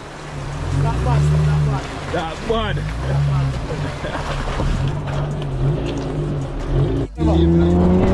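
Tyres crunch over loose rocks.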